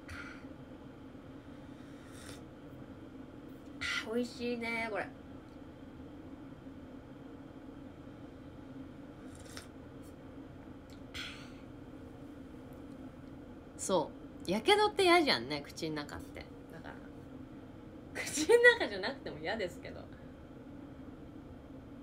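A young woman sips a drink.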